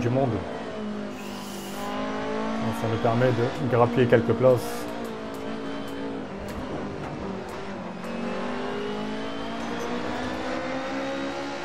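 A racing car engine roars and revs up and down steadily.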